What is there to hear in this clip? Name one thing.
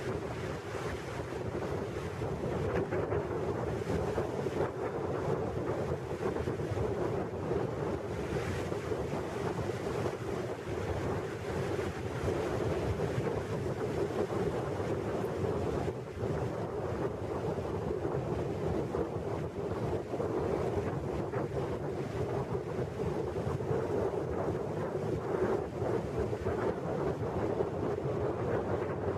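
Water laps and splashes against a boat's hull.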